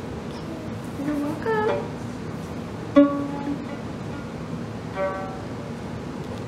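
A violin string is plucked, ringing briefly.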